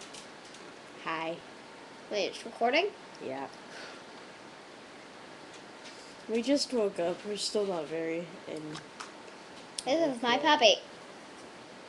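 A second young girl talks and laughs close by.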